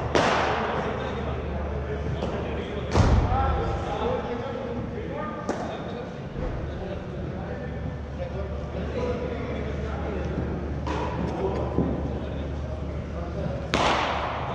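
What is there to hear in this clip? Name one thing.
A bat cracks sharply against a ball, echoing through a large hall.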